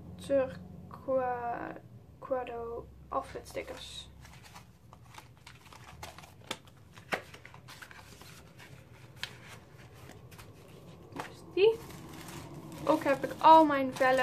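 Paper sheets rustle and crinkle as they are handled.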